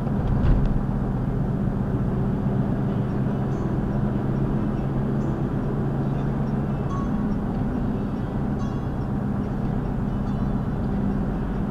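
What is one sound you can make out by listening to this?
A car engine hums steadily while driving, heard from inside the car.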